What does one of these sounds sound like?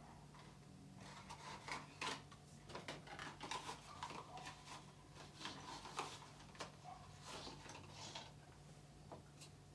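Plastic packaging rustles and crinkles.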